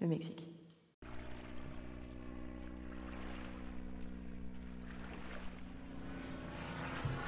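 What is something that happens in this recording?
A small propeller plane drones steadily overhead.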